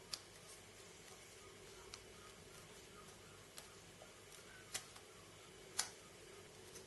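A hard drive clicks and taps lightly as it is handled.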